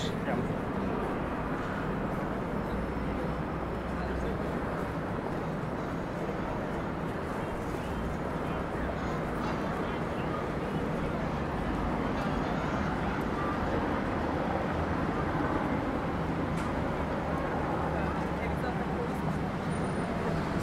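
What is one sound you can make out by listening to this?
City traffic rumbles steadily nearby.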